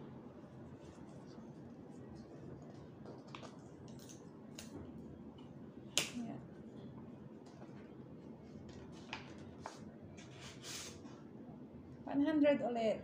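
Paper rustles and crinkles as envelopes are opened.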